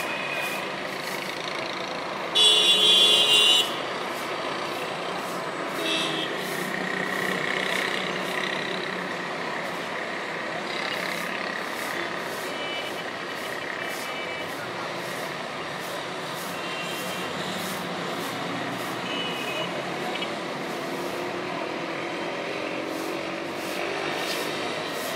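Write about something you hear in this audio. Distant town traffic rumbles steadily outdoors.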